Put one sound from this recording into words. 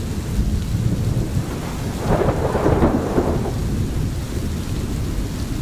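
Rain falls steadily on leaves.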